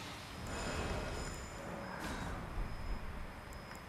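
Menu clicks tick softly several times.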